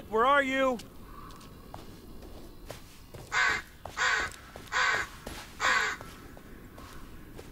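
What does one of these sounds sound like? Footsteps crunch quickly through dry leaves.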